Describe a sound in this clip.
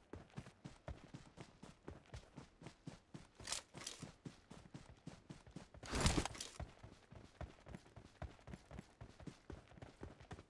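Quick footsteps thud steadily on grass.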